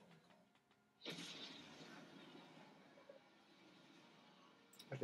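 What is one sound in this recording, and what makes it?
A whooshing sound effect plays from a television speaker.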